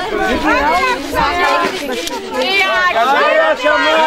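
Women cheer and ululate nearby outdoors.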